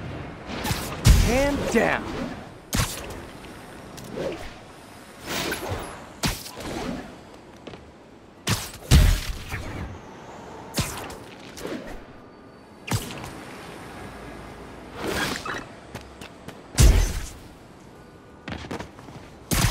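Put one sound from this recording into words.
Web lines shoot out with sharp whooshing snaps, again and again.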